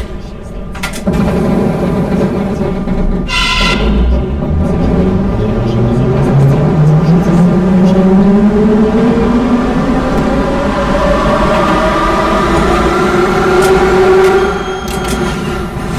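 Train wheels rumble and clatter on rails in a tunnel.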